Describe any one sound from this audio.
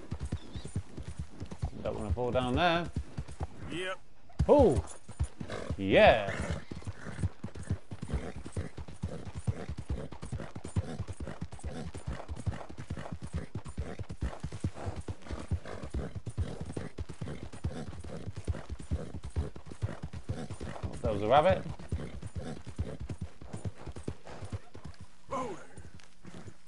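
A horse gallops with quick, steady hoofbeats on soft ground.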